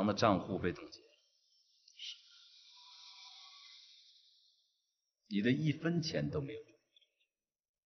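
A man speaks calmly and quietly up close.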